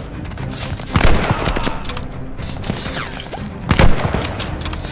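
Rifle shots crack loudly.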